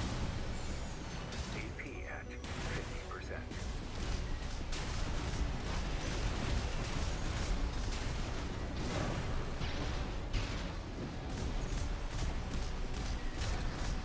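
Rapid gunfire rattles and booms.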